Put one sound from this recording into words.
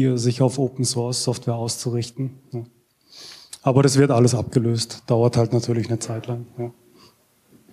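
A young man speaks calmly through a microphone in a room with some echo.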